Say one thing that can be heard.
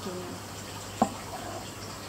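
A knife taps against a cutting board.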